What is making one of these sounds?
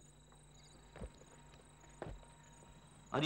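Boots step on hard ground.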